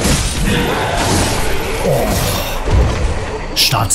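A heavy blade slashes and strikes a large beast.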